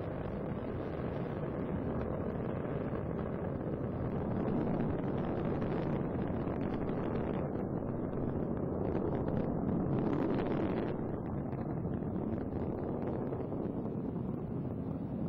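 A rocket engine roars with a steady, deep rumble.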